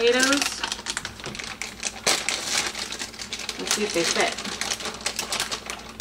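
A plastic bag crinkles and rustles in a woman's hands.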